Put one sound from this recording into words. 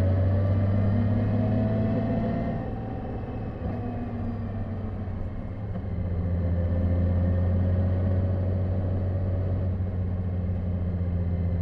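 A motorcycle engine hums steadily close by, easing off and then pulling harder again.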